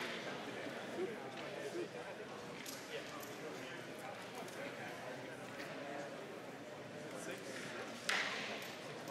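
Wooden discs click against each other on a board.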